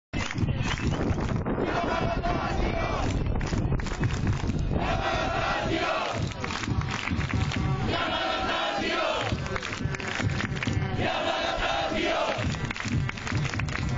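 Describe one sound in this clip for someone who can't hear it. A large crowd of fans chants loudly in unison, outdoors.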